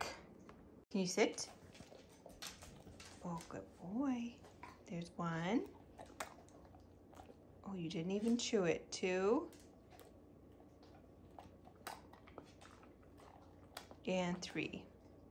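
A dog whines eagerly.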